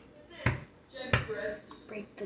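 A microwave door bangs shut.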